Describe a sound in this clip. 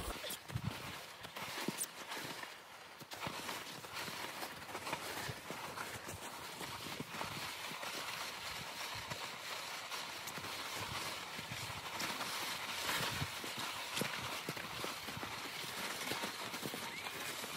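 A sled's runners scrape and hiss over packed snow.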